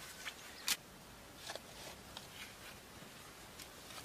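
A shovel scrapes into dirt.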